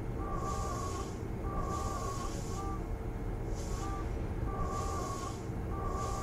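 A train's electric equipment hums steadily while standing still.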